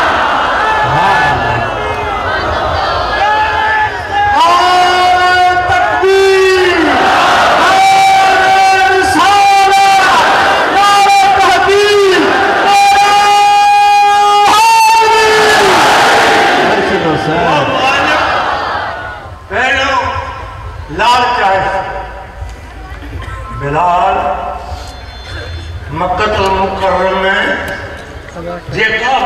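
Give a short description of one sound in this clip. An elderly man chants in a drawn-out, melodic voice through a microphone and loudspeakers.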